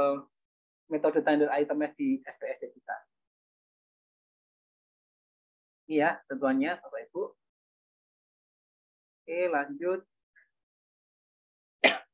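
A man speaks calmly through an online call, pausing between phrases.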